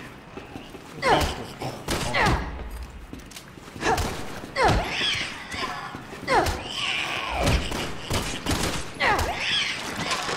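Gunshots ring out loudly in bursts.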